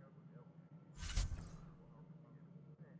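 A game menu switches pages with a short whoosh.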